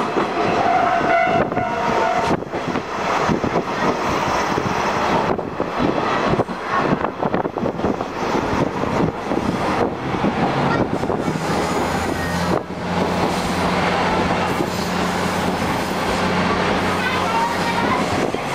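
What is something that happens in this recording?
Wind rushes past an open train carriage.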